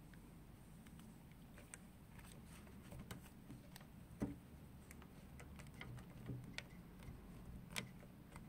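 A fishing reel clicks softly as it is handled.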